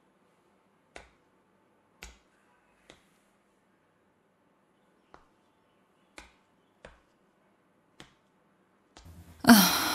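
Footsteps tread softly across a wooden floor.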